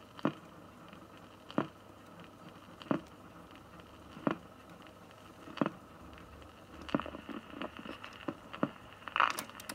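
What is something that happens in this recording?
A record player's needle clicks steadily as the record turns.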